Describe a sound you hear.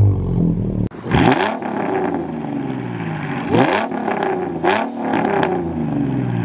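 A second car engine idles and blips its throttle through a rumbling exhaust.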